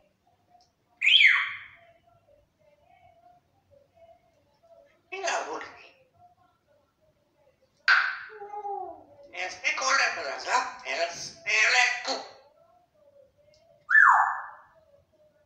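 A parrot whistles sharply.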